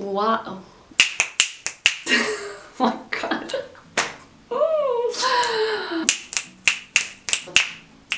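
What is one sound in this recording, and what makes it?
A young woman snaps her fingers sharply several times.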